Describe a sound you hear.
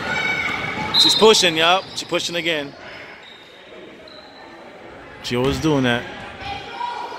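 Spectators and young players shout and call out loudly.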